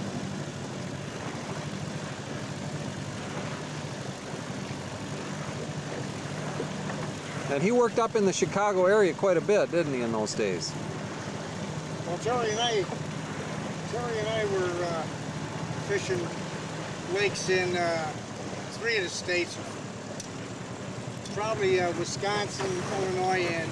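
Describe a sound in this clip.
An outboard motor hums steadily.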